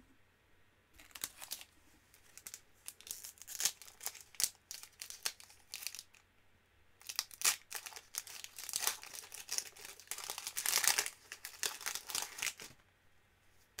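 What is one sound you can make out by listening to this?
Foil card packs crinkle and rustle close by.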